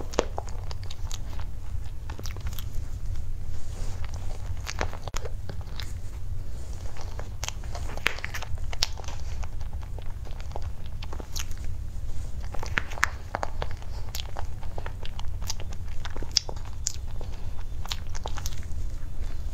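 A young woman chews soft cake with wet, sticky mouth sounds close to a microphone.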